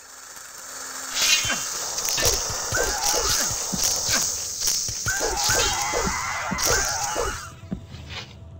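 A sword swishes and strikes flesh.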